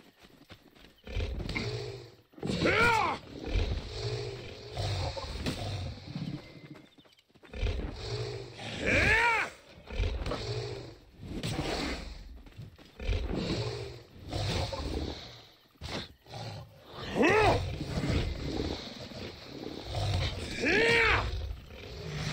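A wild animal snarls and growls in short bursts.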